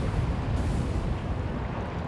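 A fire roars and crackles in bursts.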